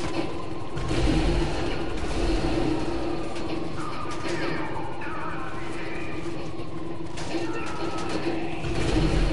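A heavy armoured vehicle's engine rumbles low.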